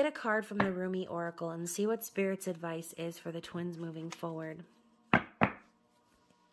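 A hand slides and taps playing cards on a table.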